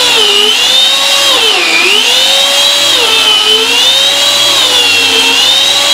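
A power saw whines loudly, its pitch dipping and rising as it cuts through carpet.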